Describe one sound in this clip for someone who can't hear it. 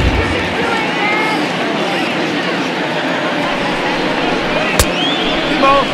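A large crowd murmurs and chatters steadily.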